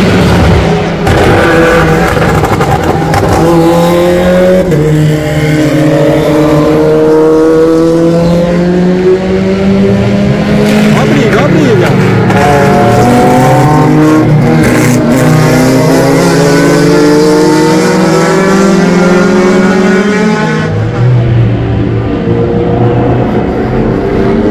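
Racing car engines roar loudly as cars speed past on a track.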